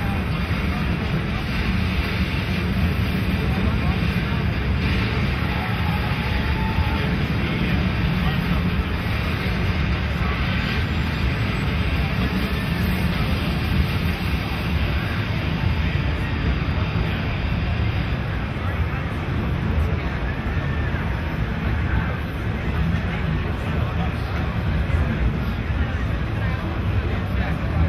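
Gunfire and explosions from a video game boom through loudspeakers in a noisy room.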